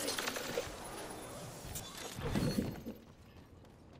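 A zipline rope hums and whirs as a character slides along it.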